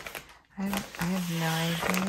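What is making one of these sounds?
A paper mailer bag crinkles as it is pressed flat.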